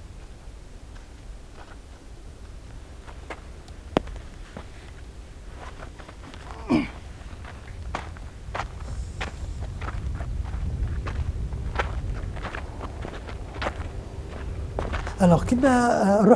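Wind rumbles across open ground outdoors.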